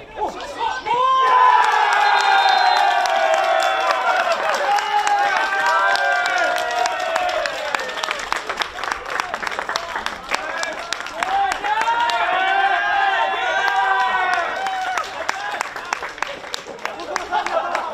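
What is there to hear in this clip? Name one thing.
Young men cheer and shout in celebration outdoors.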